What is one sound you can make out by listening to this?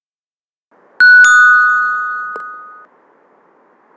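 A bright game chime rings out and fades.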